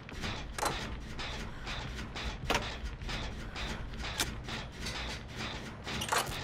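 A machine clanks and rattles as it is being repaired.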